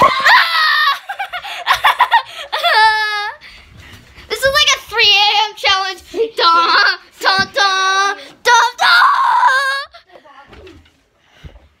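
A young boy talks with excitement close to the microphone.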